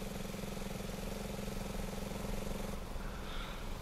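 A dirt bike engine idles with a steady hum.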